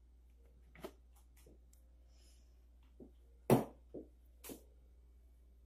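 A plastic blender jar clunks and knocks as it is lifted.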